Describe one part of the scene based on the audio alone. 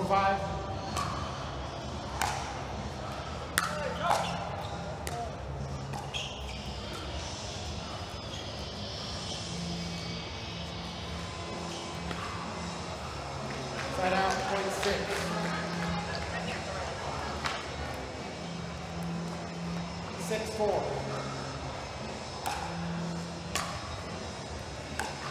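Paddles pop sharply against a plastic ball in a quick rally.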